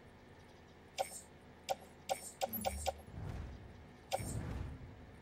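Game menu clicks sound as items are selected.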